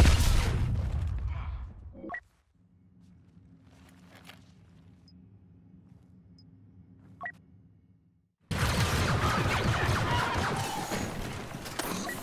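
Loud battle noise with blaster fire rumbles and crackles.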